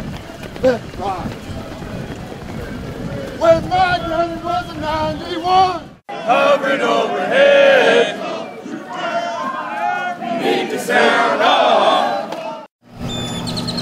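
A group of men chant loudly in unison.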